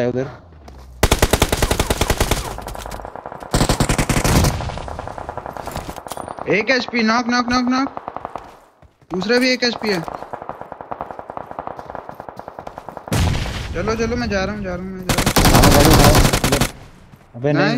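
Gunfire rattles in rapid, loud bursts.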